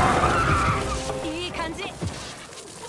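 A large creature shrieks loudly.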